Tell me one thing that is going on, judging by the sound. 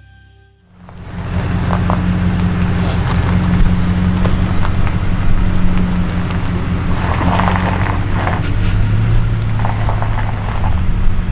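Tyres crunch slowly over gravel.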